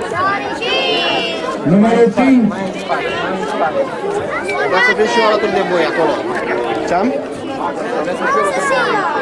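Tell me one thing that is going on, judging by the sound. A crowd of children chatter and shout outdoors.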